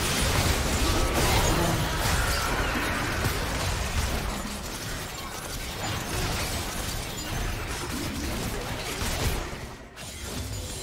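Magic blasts crackle and boom in a busy fight.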